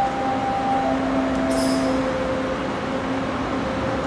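A subway train hums steadily while it stands at the platform.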